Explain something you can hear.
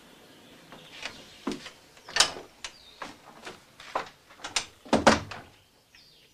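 A wooden door rattles and knocks.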